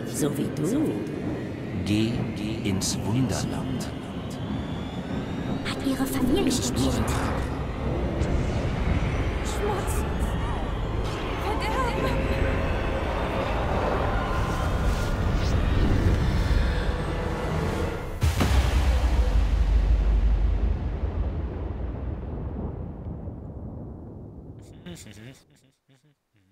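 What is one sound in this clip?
Wind rushes loudly and slowly fades away.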